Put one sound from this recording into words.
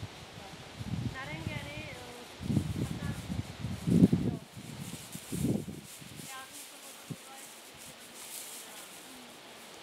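A dog trots through dry cut grass.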